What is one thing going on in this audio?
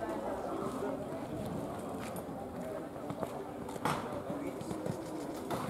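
Men and women talk nearby in a murmur of voices.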